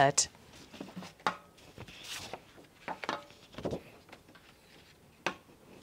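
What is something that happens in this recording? Paper cards rustle and tap against a board.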